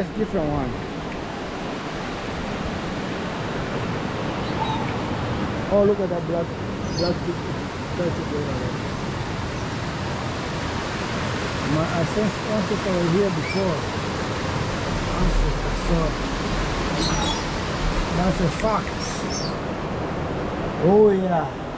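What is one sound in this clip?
A coaster cart rumbles steadily along a metal track.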